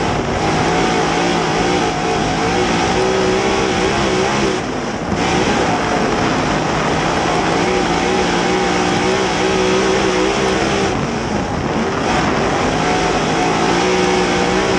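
A race car engine roars loudly up close, its pitch rising and falling as it lifts off and accelerates through the turns.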